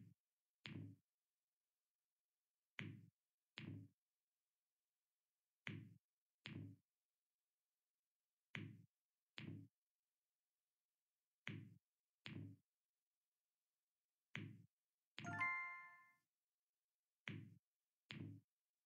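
Game balls pop and drop into tubes with short soft clicks.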